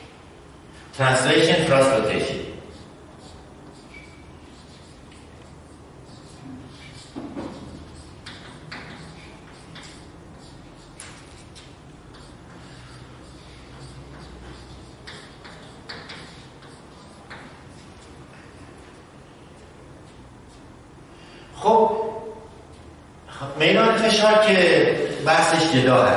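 A middle-aged man speaks with animation.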